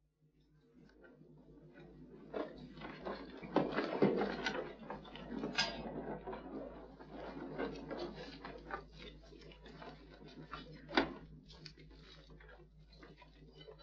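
A fire crackles and pops, with embers snapping.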